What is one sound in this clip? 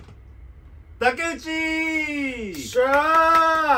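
A young man cheers loudly.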